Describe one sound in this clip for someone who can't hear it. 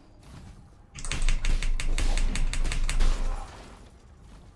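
Slashing and clashing combat sound effects play in quick bursts.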